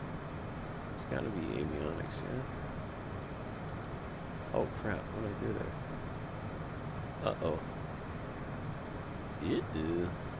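A man speaks briefly and calmly into a headset microphone.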